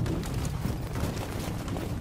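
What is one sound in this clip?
Armoured riot police march with heavy boots.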